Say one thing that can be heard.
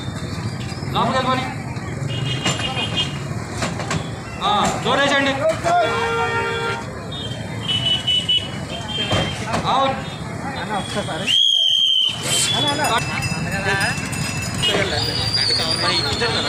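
Men talk loudly nearby.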